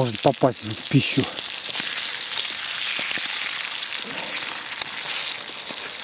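A spoon scrapes against a frying pan.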